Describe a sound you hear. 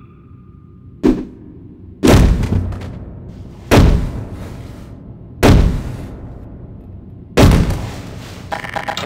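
Heavy bodies thud and crash loudly onto a floor several times.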